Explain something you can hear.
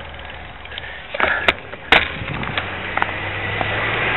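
A bicycle rattles and clunks as it comes to a stop.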